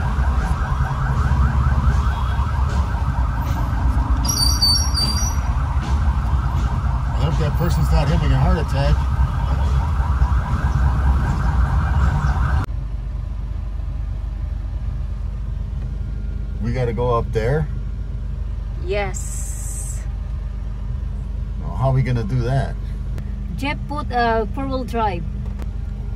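A vehicle engine drones steadily inside a cab.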